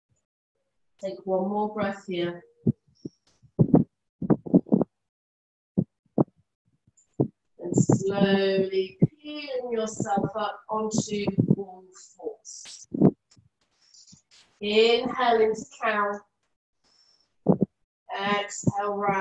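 A woman speaks calmly and slowly, close to a microphone.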